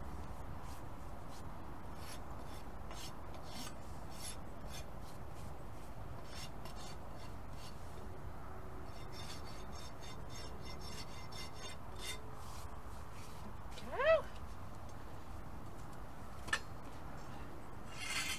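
A rasp scrapes rhythmically against a horse's hoof.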